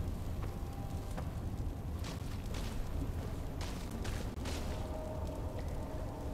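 A fire crackles softly in a metal barrel.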